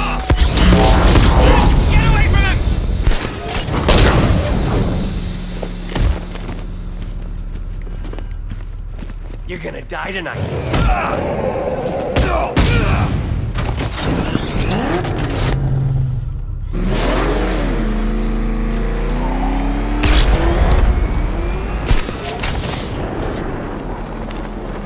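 A car engine roars loudly and revs.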